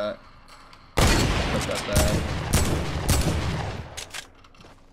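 A rifle fires rapid loud shots.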